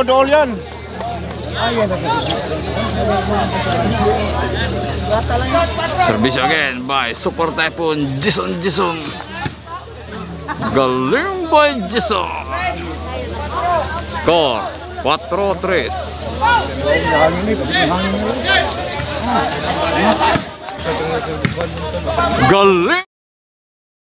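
A large crowd outdoors talks and cheers.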